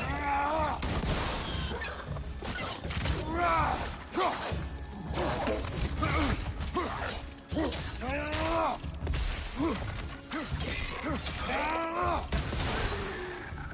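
Wolves snarl and howl.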